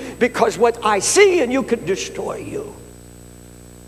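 An elderly man speaks with animation through a microphone, then falls silent.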